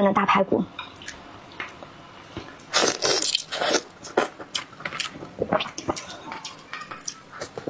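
A young woman chews and smacks her lips close up.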